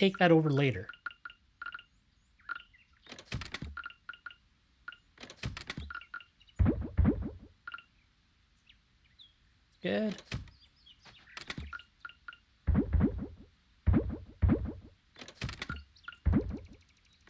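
Short soft game clicks and chimes sound as items are moved.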